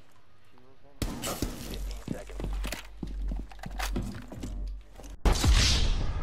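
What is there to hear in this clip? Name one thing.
A rifle fires in sharp bursts of shots.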